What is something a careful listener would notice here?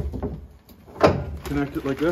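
A metal clamp snaps shut with a click.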